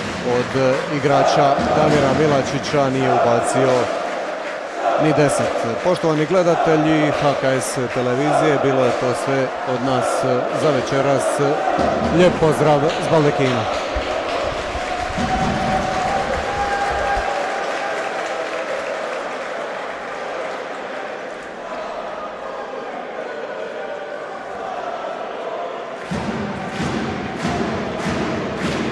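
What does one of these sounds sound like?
Men chatter and call out in a large echoing hall.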